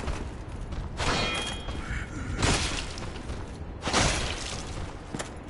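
Metal weapons strike in a few loud, sharp blows.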